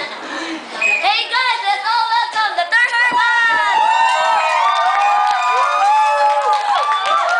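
Teenage girls and boys cheer and shout excitedly.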